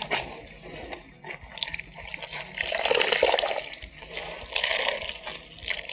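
Water splashes and drips into a basin as clothes are wrung out.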